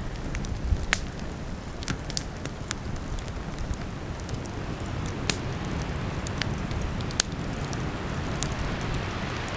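A wood fire crackles and pops sharply.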